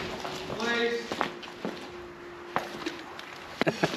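Footsteps scuff across a hard floor.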